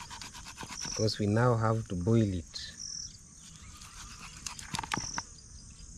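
A knife cuts through raw meat.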